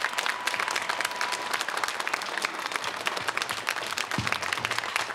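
A studio audience applauds loudly and steadily.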